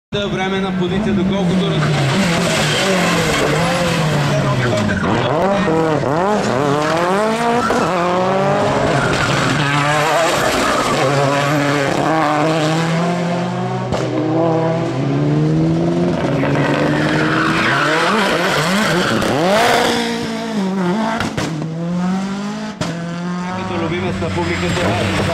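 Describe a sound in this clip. A rally car engine roars and revs hard as it speeds past.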